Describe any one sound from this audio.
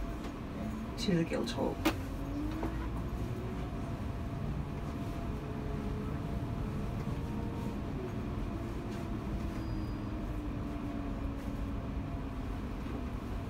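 A bus engine hums steadily from inside, slowly rising and falling in pitch.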